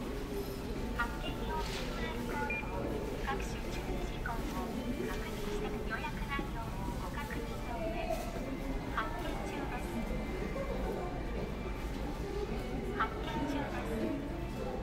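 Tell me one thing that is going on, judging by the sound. A ticket machine beeps.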